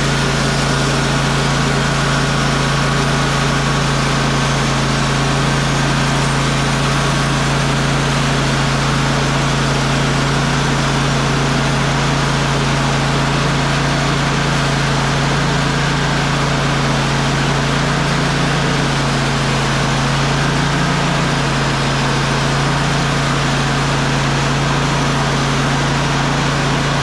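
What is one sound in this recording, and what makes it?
A band saw whines as it cuts through a log.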